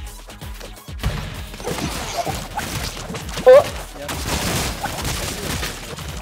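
Game sound effects of blasts and fighting pop and crackle.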